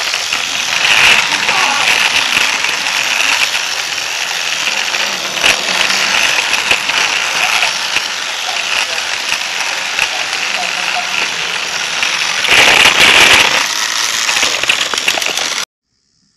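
A toy train motor whirs steadily as the train rolls along plastic track.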